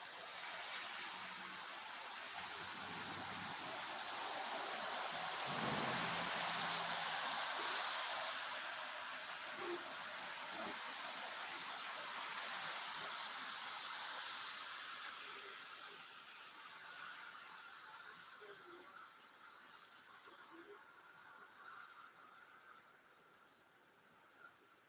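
Wind rushes steadily outdoors and slowly dies down.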